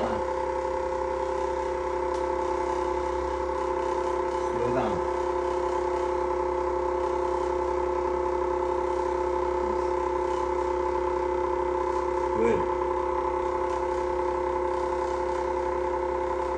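A vibration machine hums steadily.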